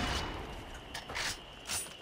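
A pistol magazine clicks as the gun is reloaded.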